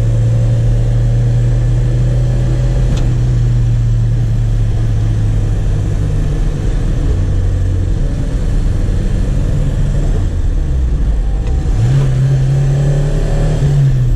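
Tyres roll on a road with a steady rumble.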